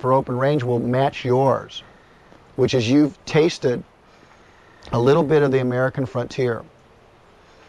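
A middle-aged man speaks calmly and thoughtfully, close up.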